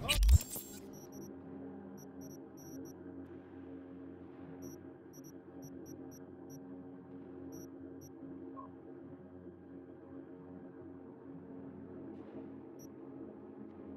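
Soft electronic ticks sound now and then.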